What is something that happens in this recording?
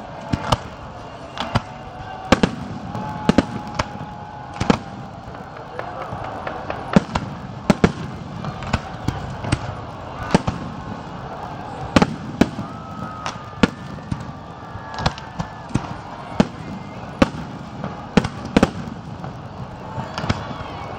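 Fireworks bang and crackle in the sky.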